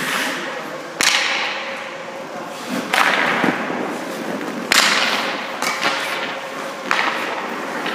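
Pucks smack against pads and boards with sharp cracks, echoing in a large hall.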